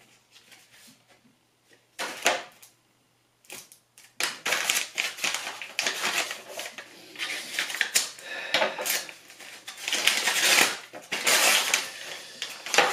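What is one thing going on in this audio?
Envelope paper rustles and tears in someone's hands.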